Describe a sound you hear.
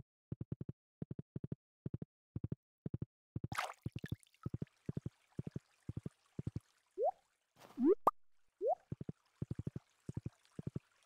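Horse hooves clop rhythmically in a steady trot.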